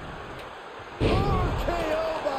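A wrestler slams down hard onto the ring mat with a loud thud.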